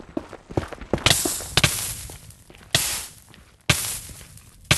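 Lava hisses and pops.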